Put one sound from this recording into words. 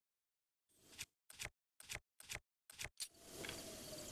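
Short menu clicks tick quickly one after another.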